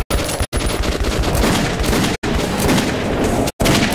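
Pistol shots crack rapidly.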